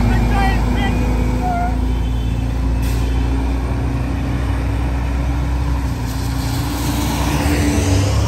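A car drives past on a wet road.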